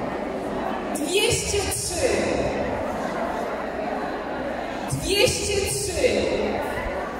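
A woman speaks briefly through a microphone and loudspeaker.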